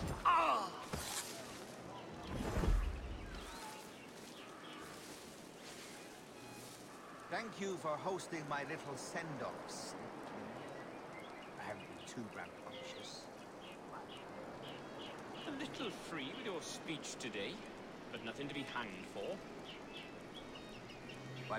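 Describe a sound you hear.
Leafy bushes rustle as someone moves through them.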